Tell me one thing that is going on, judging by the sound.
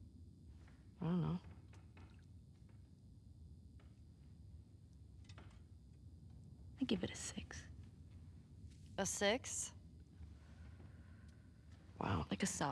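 A second young woman answers quietly, close by.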